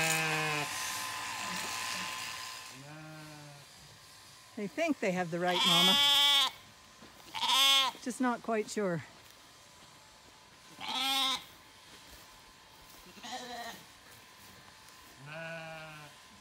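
Lambs bleat loudly and repeatedly close by.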